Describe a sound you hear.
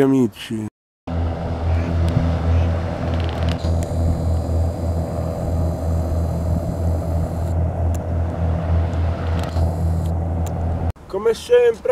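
A ferry engine hums steadily as the boat passes on the water.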